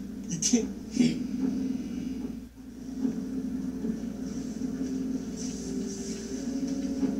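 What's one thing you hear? Video game sounds play from a television loudspeaker.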